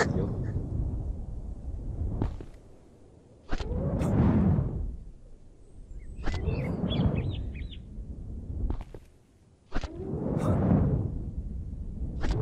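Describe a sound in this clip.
Air rushes past in repeated swelling whooshes as a grappling rope swings.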